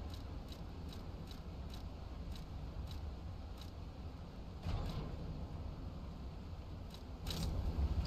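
Soft interface clicks tick at an even pace.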